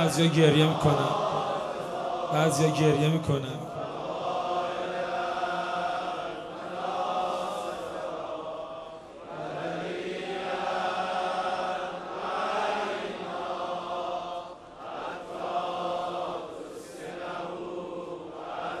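A crowd of men chants together in a large echoing hall.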